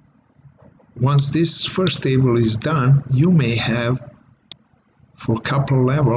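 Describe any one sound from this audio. An elderly man talks calmly over an online call.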